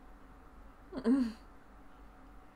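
A young woman speaks a short word close by.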